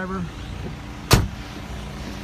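A truck door slams shut.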